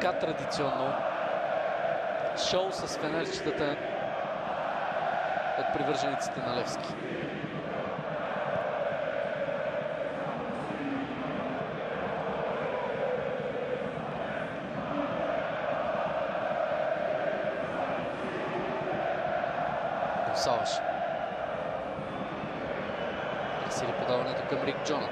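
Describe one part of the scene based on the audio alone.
A large stadium crowd chants and sings loudly and steadily.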